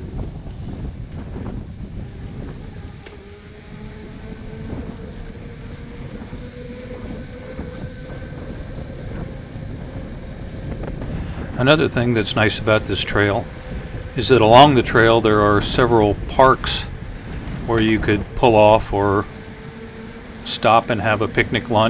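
Bicycle tyres hum softly on smooth pavement.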